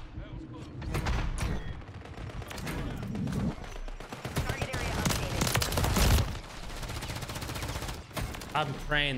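Rapid gunfire rattles and bangs.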